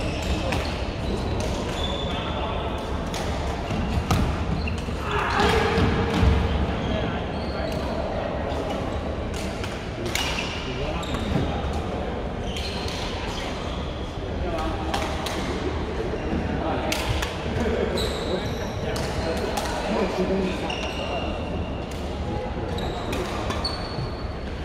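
Shoes squeak on the court floor now and then.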